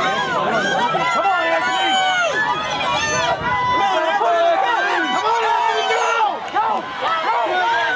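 A crowd of spectators cheers and shouts loudly close by.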